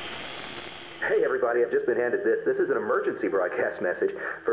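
A radio suddenly tunes in to a crackly broadcast.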